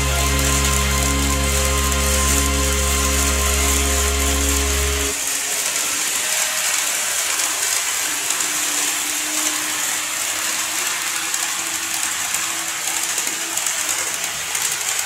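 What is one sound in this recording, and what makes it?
A model train rolls along plastic track.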